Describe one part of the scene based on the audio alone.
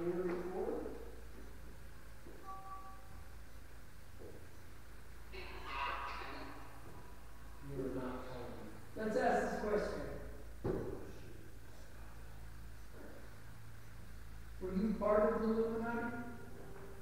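A man speaks calmly at a distance.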